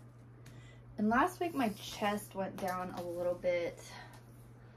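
A young woman speaks briefly and calmly, close by.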